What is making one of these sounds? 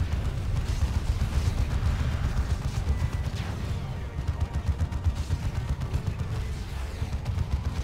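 Guns fire in rapid bursts amid rumbling explosions.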